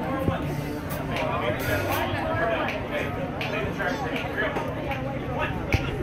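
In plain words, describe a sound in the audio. A big band plays upbeat jazz with saxophones and brass.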